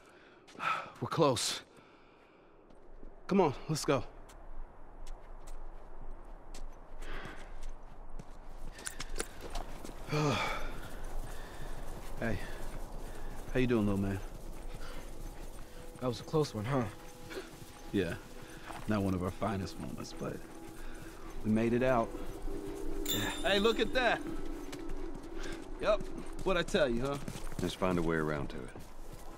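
Footsteps tread on grass and gravel.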